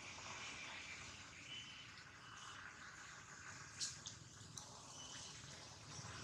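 A baby long-tailed macaque squeaks faintly.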